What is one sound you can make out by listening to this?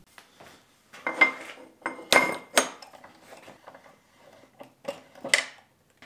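A metal tube clinks against a steel vise.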